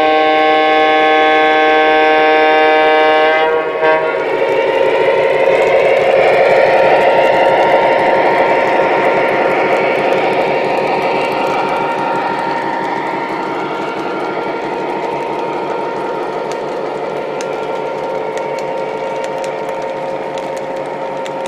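Model train wheels rumble and clatter along the track.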